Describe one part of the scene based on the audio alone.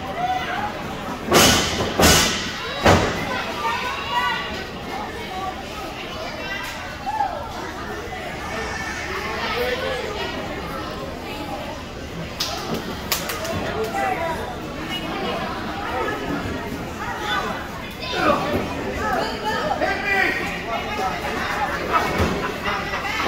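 A crowd of people chatter and call out throughout, in a large echoing hall.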